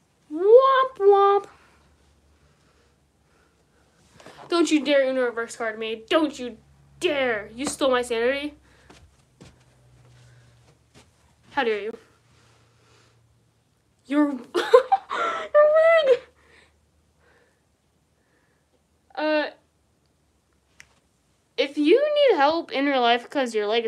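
A young woman talks close by in short bursts, with animation.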